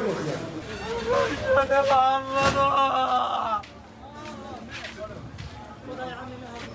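A middle-aged man sobs and wails with grief close by.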